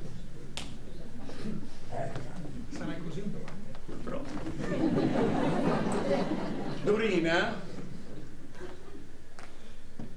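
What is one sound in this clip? A crowd cheers and applauds in a large hall.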